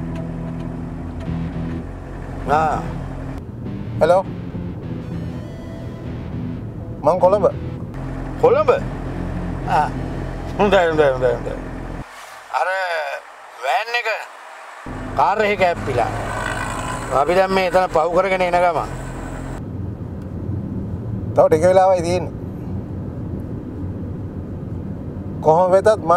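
A middle-aged man talks into a phone nearby.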